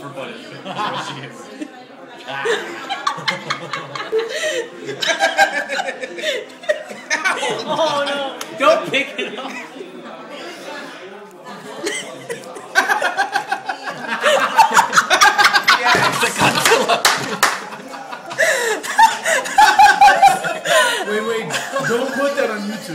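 A young woman talks and laughs close by, with animation.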